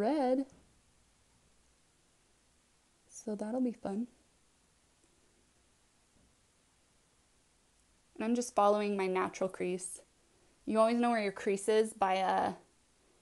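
A woman talks calmly and close to a microphone, in short bursts with pauses.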